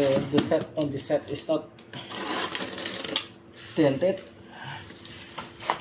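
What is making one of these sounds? A blade slices through packing tape.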